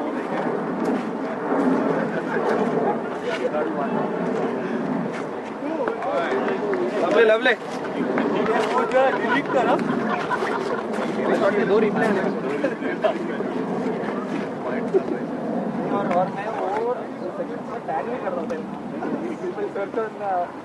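Several men talk and call out outdoors.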